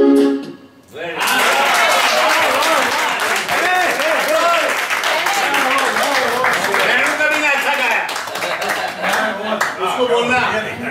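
A crowd claps and applauds loudly.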